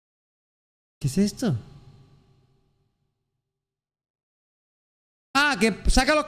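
A young man speaks with animation into a microphone.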